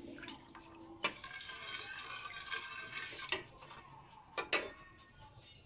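A metal ladle clinks against the side of a pot.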